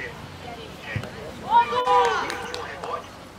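A football thumps as a boy kicks it.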